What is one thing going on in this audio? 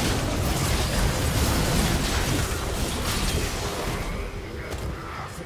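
Game combat effects crash, whoosh and clang in a busy fight, then die down.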